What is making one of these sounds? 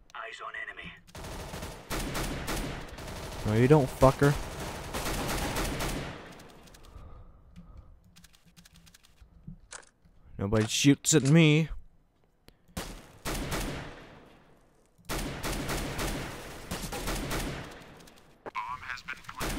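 A rifle fires sharp single shots.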